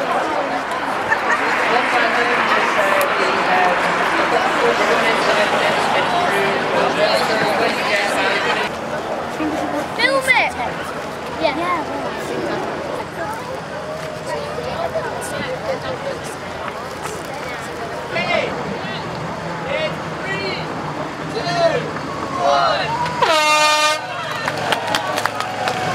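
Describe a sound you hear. A large outdoor crowd chatters loudly.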